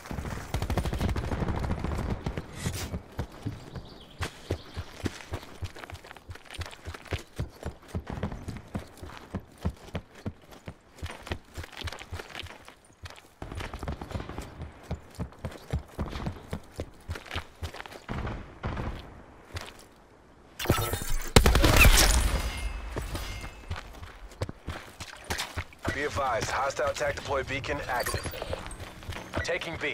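Footsteps thud quickly and steadily on hard ground.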